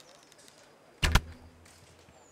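A bowstring twangs sharply as an arrow is loosed.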